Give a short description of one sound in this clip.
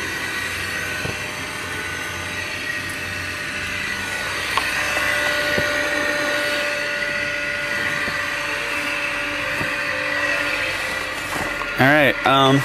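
A small plane's engine drones steadily while taxiing.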